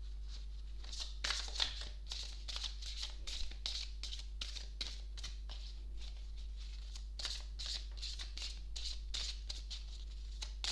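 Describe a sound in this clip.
Playing cards are shuffled, flicking and riffling softly close by.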